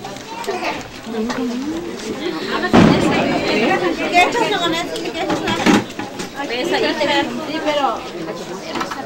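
Several women chatter nearby, talking over one another outdoors.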